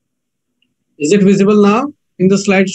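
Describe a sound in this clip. An elderly man speaks calmly through an online call.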